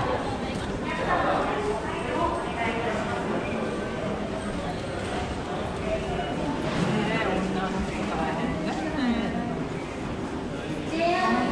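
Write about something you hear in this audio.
A crowd of men and women chatters nearby in a large echoing hall.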